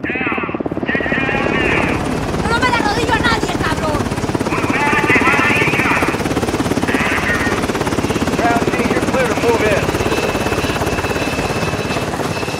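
A helicopter's rotor thumps rapidly overhead.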